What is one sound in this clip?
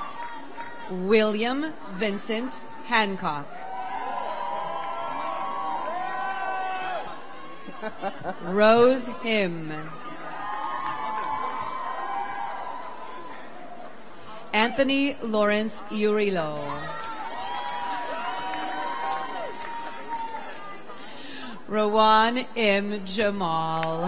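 A crowd cheers and whoops loudly in short bursts.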